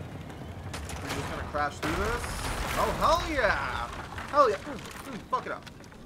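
Wooden planks crash and splinter.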